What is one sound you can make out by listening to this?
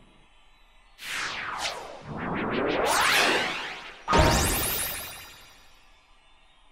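A magical chime sweeps upward and shimmers.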